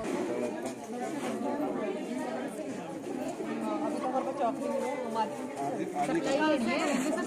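A crowd of women chatter outdoors.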